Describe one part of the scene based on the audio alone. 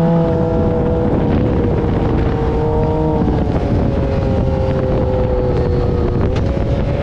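An engine drones loudly and steadily, its pitch shifting slightly.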